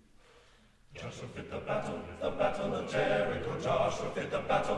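A choir sings together loudly.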